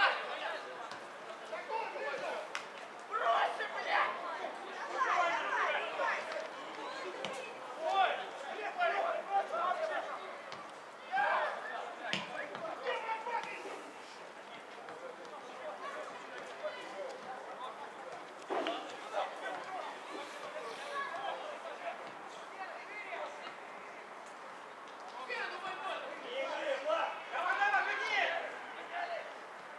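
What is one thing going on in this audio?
Men shout to each other in the distance across an open field.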